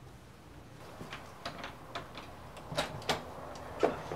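A key rattles and clicks in a door lock.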